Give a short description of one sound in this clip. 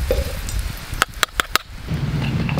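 Metal tongs clink against a pan.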